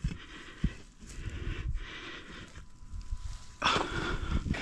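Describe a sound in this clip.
Hands pull and crumble clumps of soil and grass roots.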